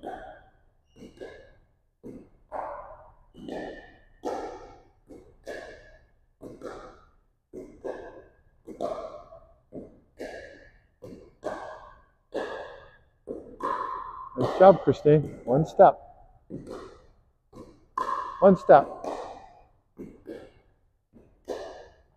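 A man talks calmly close by in an echoing gym.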